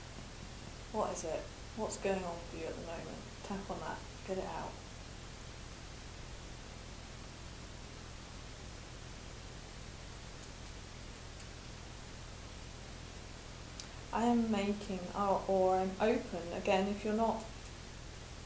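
A young woman speaks calmly and close up, pausing now and then.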